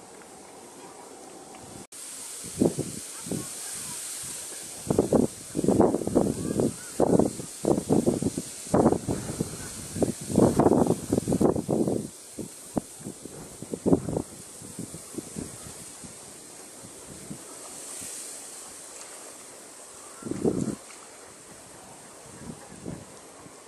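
Water laps gently along a shore.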